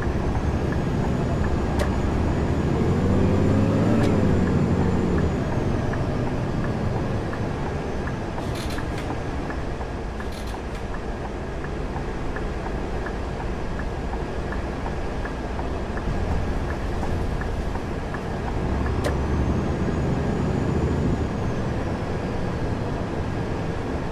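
A bus engine rumbles steadily and revs up and down now and then.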